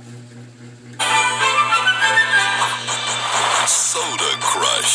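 A bright game fanfare plays loudly.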